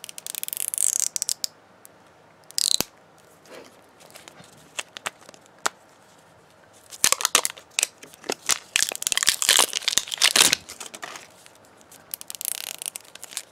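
Fingernails click and tap on hard plastic.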